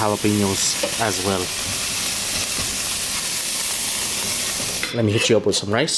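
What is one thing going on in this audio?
Meat sizzles loudly on a hot grill.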